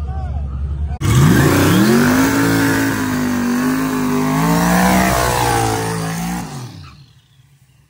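A race car engine revs hard in loud bursts.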